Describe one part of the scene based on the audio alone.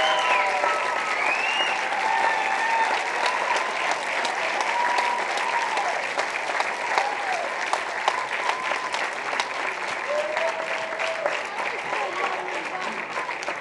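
An audience cheers and whistles.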